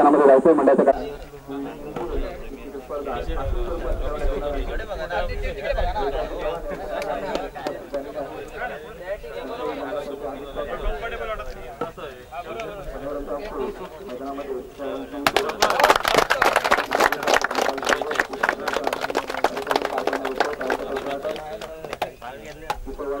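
A crowd of men chatters in the background outdoors.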